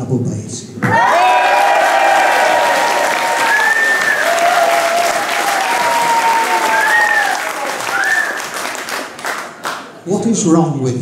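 A brass band plays a tune in a large hall.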